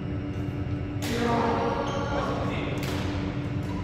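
A racket smacks a shuttlecock in a large echoing hall.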